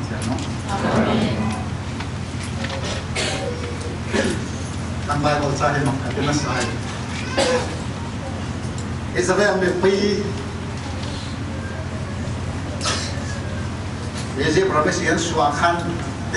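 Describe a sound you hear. A middle-aged man preaches with animation through a microphone, in an echoing hall.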